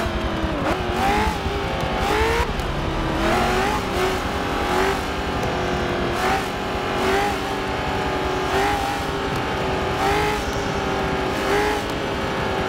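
A race car engine roars and revs, rising in pitch and dropping with each gear change.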